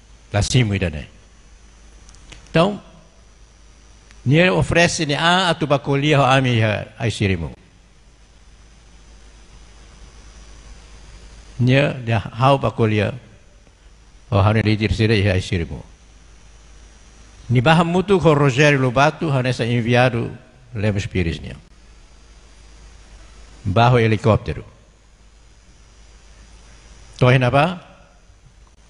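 An elderly man speaks slowly into a microphone, with long pauses.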